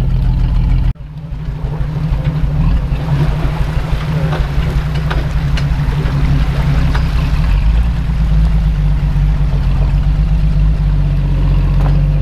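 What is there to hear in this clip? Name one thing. Shallow creek water trickles and gurgles close by.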